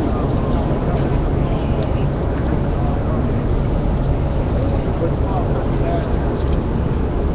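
A crowd of young men and women chatters loudly close by.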